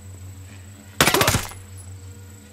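A rifle fires a short, loud burst of shots.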